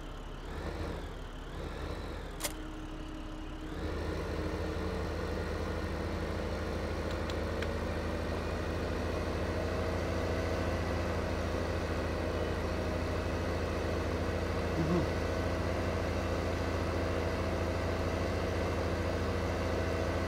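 A tractor engine rumbles steadily and grows louder as it drives off.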